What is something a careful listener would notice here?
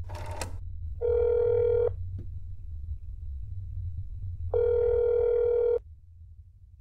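A telephone ringing tone buzzes twice through a receiver.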